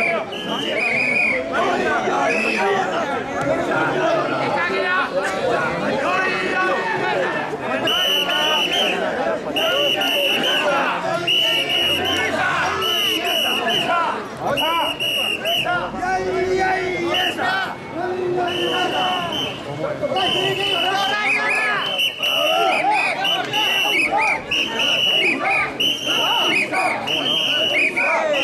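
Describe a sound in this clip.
A large crowd of men chants and shouts loudly in rhythm, close by, outdoors.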